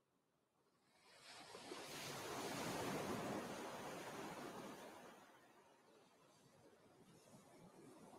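Ocean waves wash onto a beach, swelling and then ebbing.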